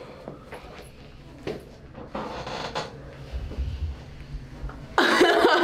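A young woman laughs excitedly nearby.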